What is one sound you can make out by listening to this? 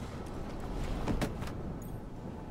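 A body slumps and thumps onto a hard floor.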